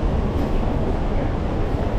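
Street traffic hums nearby.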